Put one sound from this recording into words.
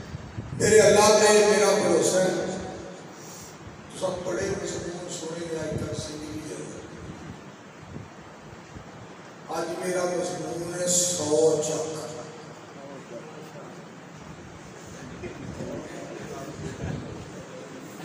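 A middle-aged man speaks forcefully into a microphone through a loudspeaker, in bursts with pauses.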